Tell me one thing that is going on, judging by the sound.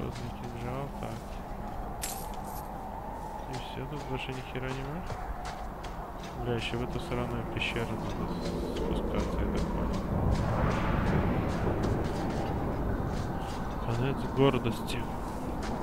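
Armoured footsteps crunch on gravel and stone.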